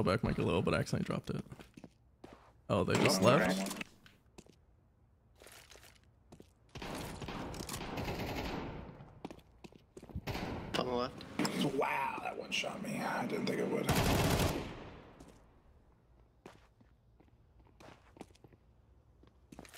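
Footsteps patter quickly on hard stone.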